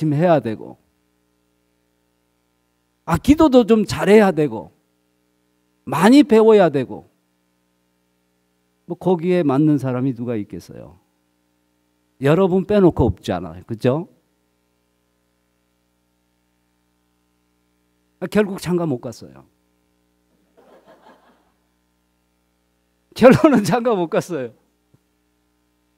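A middle-aged man speaks calmly through a microphone in short phrases with pauses.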